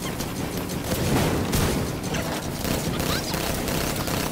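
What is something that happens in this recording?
A heavy gun fires loud blasts.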